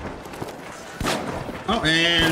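An explosion bursts with a sharp crack.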